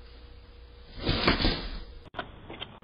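A folding chair collapses with a loud clatter.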